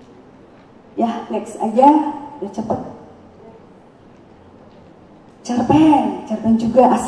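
A woman speaks through a microphone in an echoing hall.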